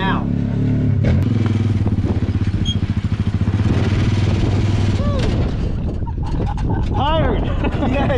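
An off-road buggy's engine rumbles and revs.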